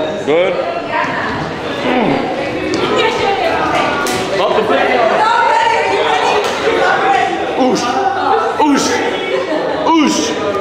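A small crowd cheers and chatters in the background.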